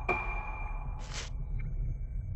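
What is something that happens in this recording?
A paper page turns with a soft swish.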